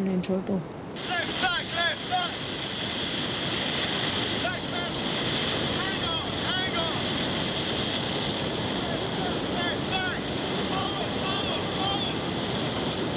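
Young men shout excitedly over the rushing water.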